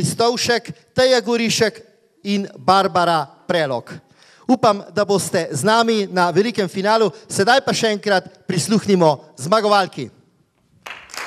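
A man speaks with animation into a microphone over loudspeakers in a large hall.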